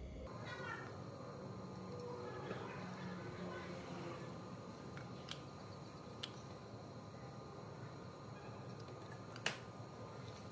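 Aluminium drink cans tap together as they are set on top of one another.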